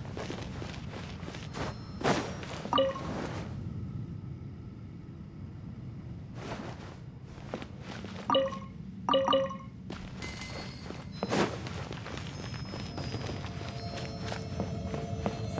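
Light footsteps patter quickly over wood and stone.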